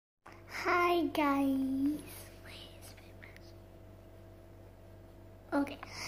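A young girl speaks excitedly and close by in a high, drawn-out voice.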